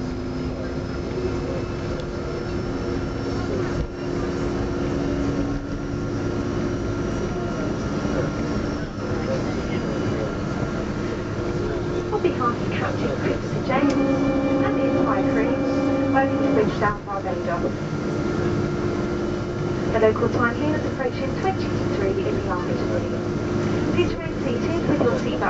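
An airliner's wheels rumble over a runway.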